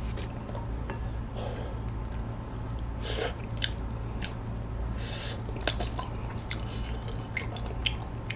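A young man chews and smacks on saucy chicken close to a microphone.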